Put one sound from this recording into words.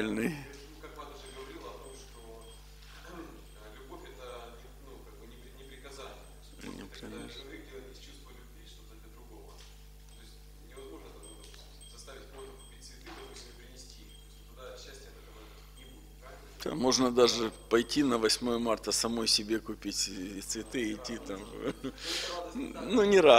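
A man speaks calmly into a microphone, at first quietly and then louder and more lively.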